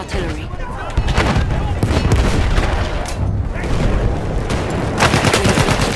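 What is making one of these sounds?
Explosions boom and rumble close by.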